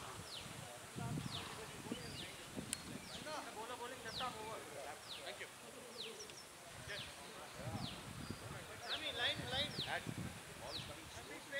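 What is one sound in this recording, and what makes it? Men call out across an open field.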